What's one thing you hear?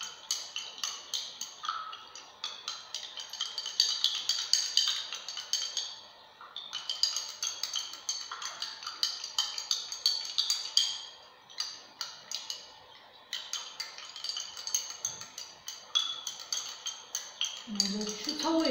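A spoon clinks rapidly against a glass as it stirs water.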